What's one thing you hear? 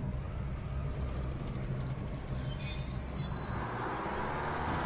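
A bus engine rumbles low and steady from inside the bus.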